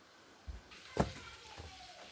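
A book slides off a shelf.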